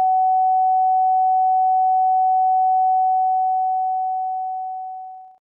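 A steady high-pitched test tone hums, then slowly fades away.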